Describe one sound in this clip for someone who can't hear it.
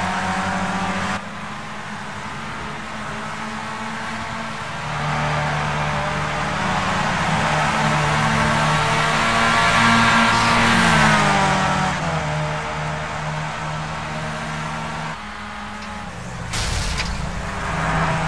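Racing car engines whine loudly at high revs, rising and falling as the cars pass.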